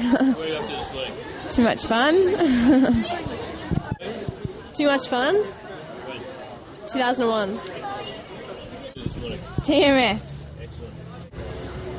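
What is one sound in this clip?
Young women laugh close by.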